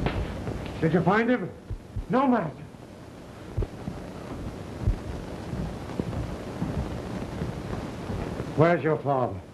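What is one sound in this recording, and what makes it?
A man speaks in an echoing room.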